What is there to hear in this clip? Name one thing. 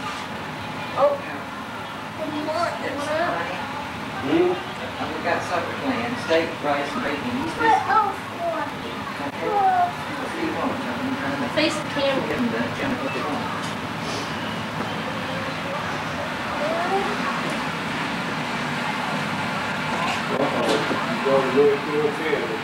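A small child babbles.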